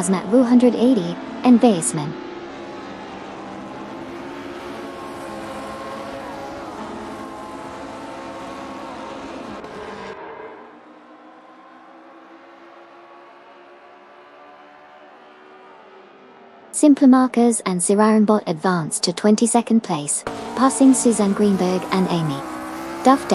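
Racing car engines drone and whine as cars speed past.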